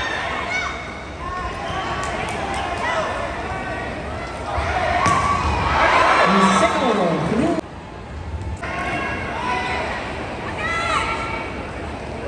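Sneakers squeak on a court floor.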